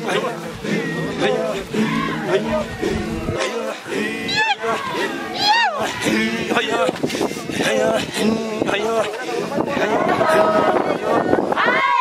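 A group of men chant in deep voices.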